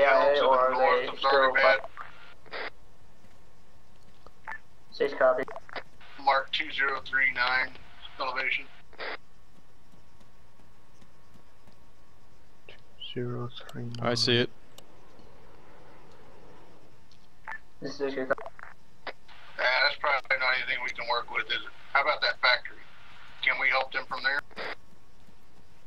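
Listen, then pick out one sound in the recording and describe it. A man talks casually into a close microphone, in bursts.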